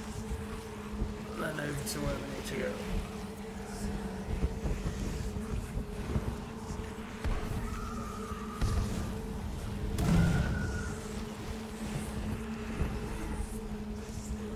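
Wind rushes steadily past during a fast parachute glide.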